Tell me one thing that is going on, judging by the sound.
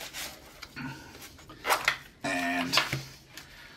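A zipper rasps open.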